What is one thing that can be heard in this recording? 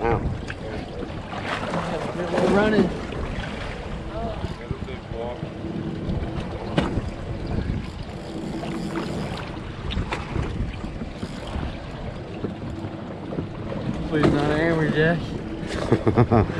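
A fishing reel clicks and whirs.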